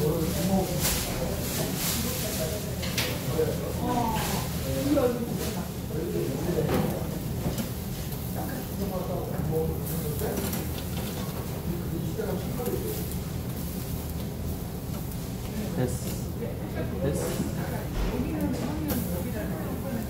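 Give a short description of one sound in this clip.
Tongs click against a grill.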